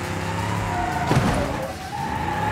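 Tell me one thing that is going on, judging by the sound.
A car crashes with a loud metal crunch.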